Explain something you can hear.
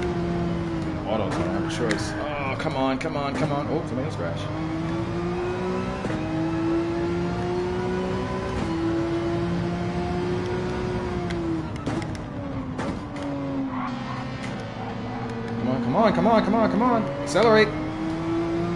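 Tyres squeal sharply through corners.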